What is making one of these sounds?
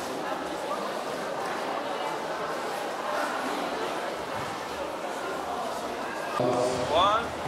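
Many voices murmur in a large echoing hall.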